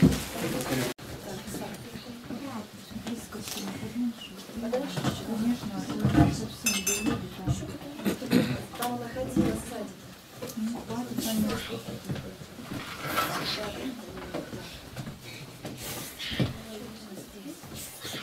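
Young women talk with animation nearby.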